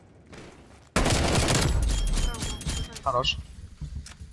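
Rapid gunfire rattles in a burst.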